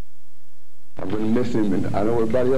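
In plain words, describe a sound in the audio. An older man speaks calmly and clearly, close to a microphone.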